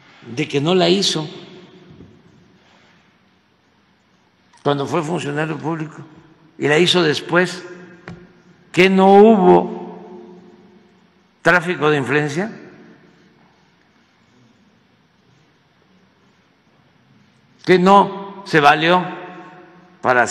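An elderly man speaks emphatically into a microphone, in short bursts with pauses.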